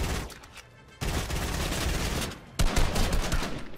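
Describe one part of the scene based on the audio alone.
A shotgun fires loud blasts in quick succession.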